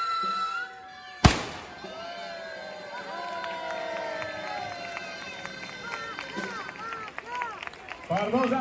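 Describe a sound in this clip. A crowd of people shouts and cheers outdoors.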